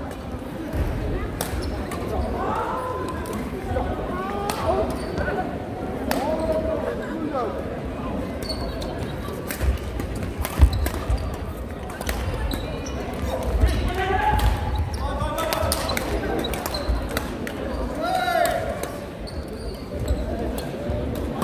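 Many people chatter and call out in the background of a large echoing hall.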